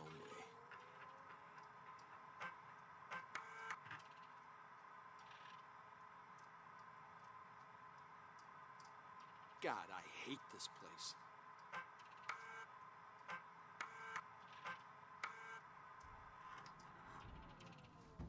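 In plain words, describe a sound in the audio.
A computer terminal hums steadily.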